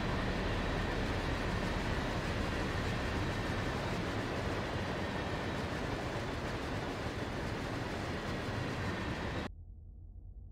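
Freight cars rumble and clatter past close by on the rails.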